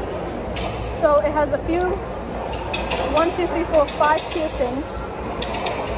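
A young girl speaks close by in a high, lively voice.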